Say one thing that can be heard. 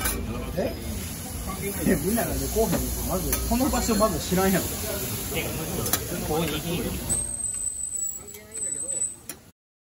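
Metal spatulas scrape and clatter on a griddle.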